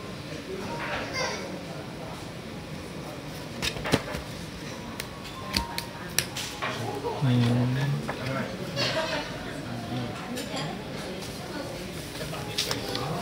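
Paper menus rustle and slide on a table.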